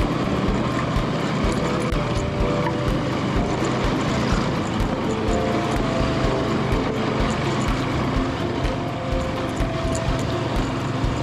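Tyres rumble and bump over a rough dirt road.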